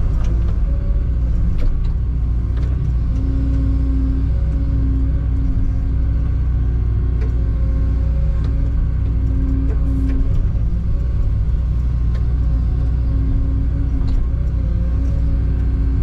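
A diesel engine rumbles steadily close by, heard from inside a cab.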